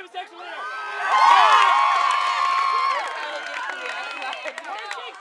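A crowd of young people cheers and yells together.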